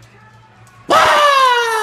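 A woman screams loudly.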